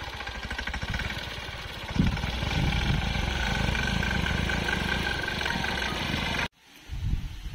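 A tractor engine runs with a steady rumble close by.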